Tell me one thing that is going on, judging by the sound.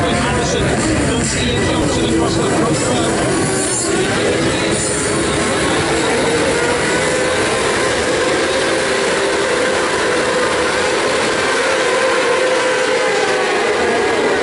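Many motorcycle engines rev loudly and roar away from a start line.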